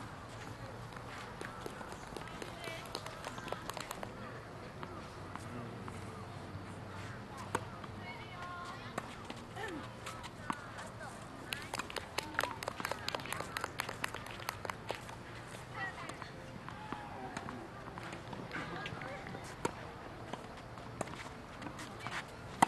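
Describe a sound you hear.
Tennis balls are struck with rackets, popping sharply outdoors.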